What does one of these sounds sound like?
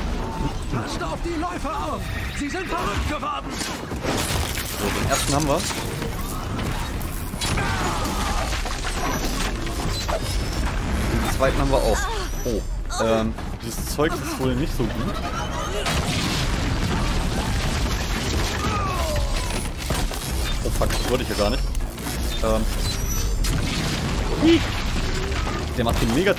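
Mechanical creatures screech and growl with warbling electronic cries.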